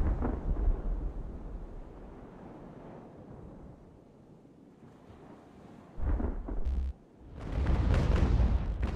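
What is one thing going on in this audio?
Ocean waves wash and roll steadily.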